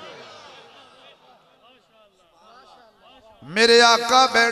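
A crowd of men murmurs and calls out.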